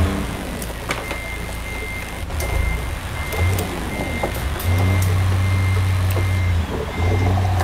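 A truck's reversing alarm beeps steadily.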